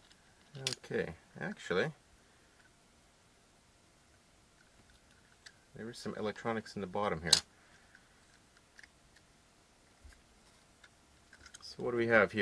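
Small plastic parts click and tap as hands handle them.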